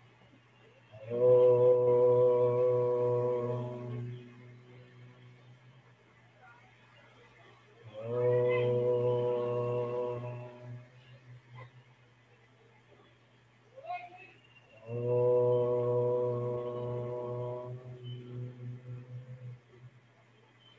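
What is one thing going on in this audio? A group of children and adults chant a long, steady drawn-out tone together over an online call, three times with pauses between.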